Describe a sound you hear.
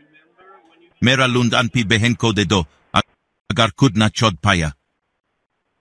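A man talks into a phone receiver.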